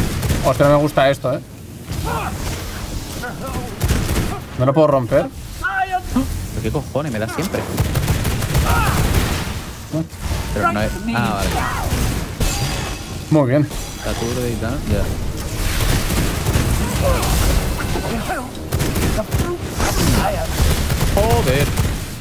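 Magic blasts and combat effects crackle and boom.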